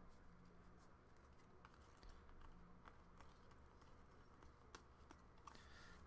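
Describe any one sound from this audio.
Trading cards shuffle and rustle in hands.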